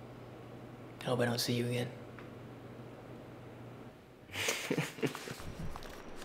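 A young man speaks softly nearby.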